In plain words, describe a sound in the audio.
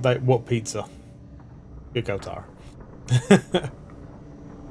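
A man laughs into a close microphone.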